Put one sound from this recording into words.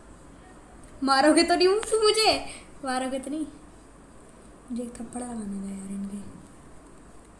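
A young girl speaks animatedly, close to the microphone.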